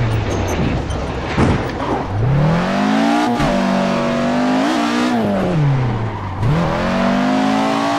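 A car engine revs hard, rising and falling in pitch with quick gear changes.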